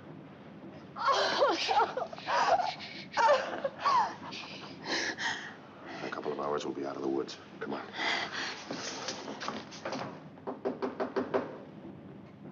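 A woman cries out in distress.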